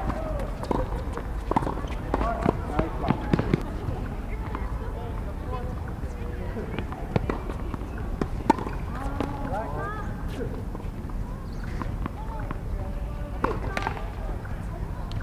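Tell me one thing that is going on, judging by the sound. Tennis rackets strike a ball back and forth with sharp pops.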